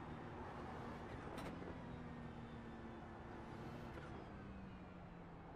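A racing car engine roars steadily, changing pitch as the gears shift.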